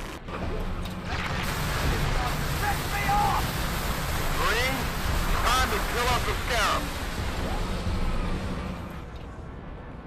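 Energy weapons fire in rapid, crackling bursts.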